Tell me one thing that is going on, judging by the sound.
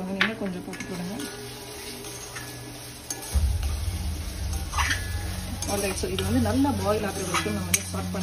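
A wooden spoon scrapes and stirs food in a metal pan.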